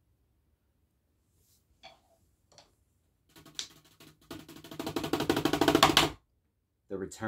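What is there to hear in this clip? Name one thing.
Drumsticks tap rapidly on drum pads.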